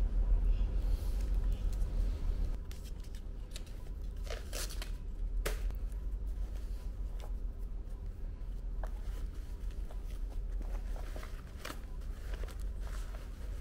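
Paper rustles and crinkles as a shoe is handled.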